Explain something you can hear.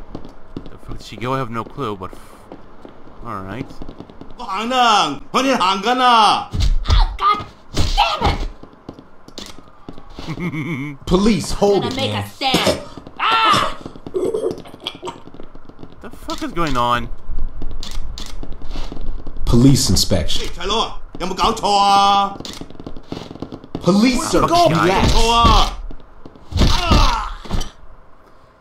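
Men shout and argue loudly.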